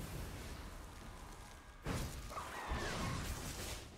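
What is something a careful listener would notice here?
Fire spells whoosh and crackle.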